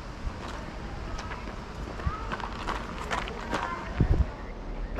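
A runner's shoes pat on pavement.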